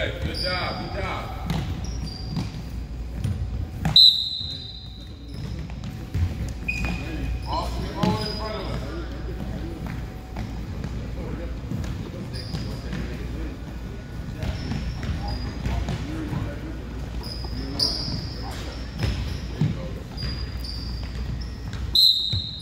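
The sounds echo around a large hall.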